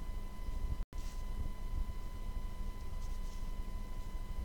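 A pen scratches briefly on paper.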